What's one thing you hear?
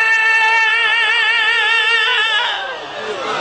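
A man holds a long, wavering sung note through a microphone.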